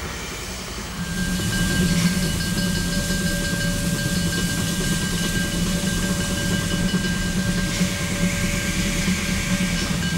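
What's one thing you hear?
A steam locomotive rumbles steadily as it rolls slowly closer.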